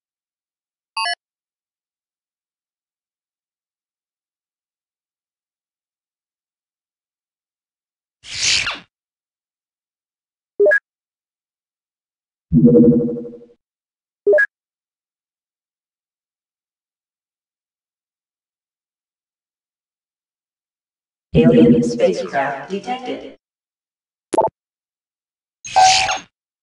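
Short electronic chimes and beeps sound from a game interface.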